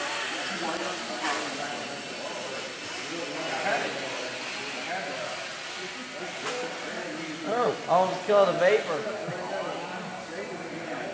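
Small drones buzz steadily as they fly around an echoing hall.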